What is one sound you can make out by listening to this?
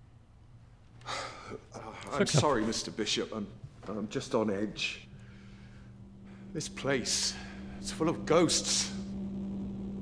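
An older man speaks calmly and apologetically.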